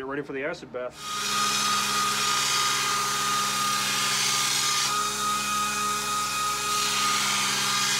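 A belt grinder whirs steadily as metal grinds against the belt.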